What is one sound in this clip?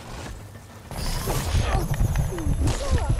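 A large mechanical beast roars and stomps nearby.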